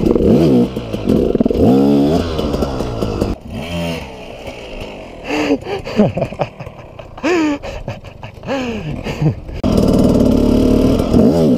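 A dirt bike engine revs loudly up close.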